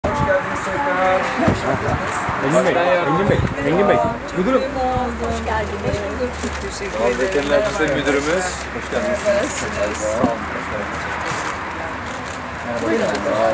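Several adult men and women talk at once outdoors, greeting each other with animation.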